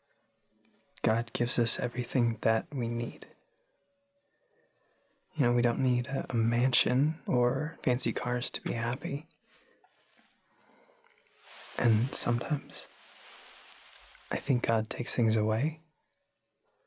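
A young man speaks quietly and tensely up close.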